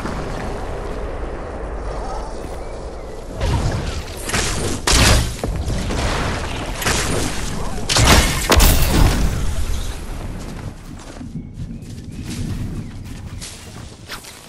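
Wooden walls snap into place with quick hollow knocks.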